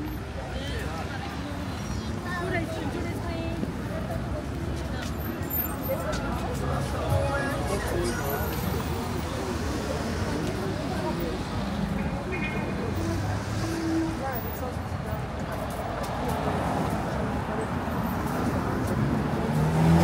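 Footsteps tap on the pavement close by.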